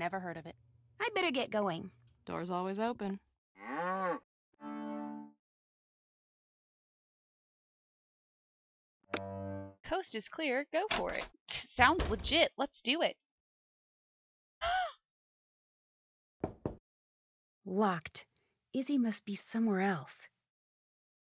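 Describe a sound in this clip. A young woman talks with animation into a headset microphone.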